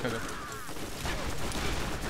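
An electric charge crackles and fizzes.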